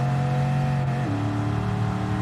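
A racing car engine drops in pitch as the gear shifts up.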